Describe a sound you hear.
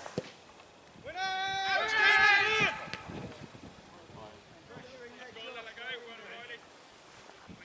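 Young men shout to each other from across an open field outdoors.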